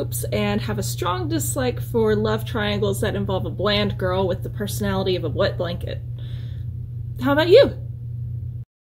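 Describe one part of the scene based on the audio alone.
A young woman talks calmly and closely.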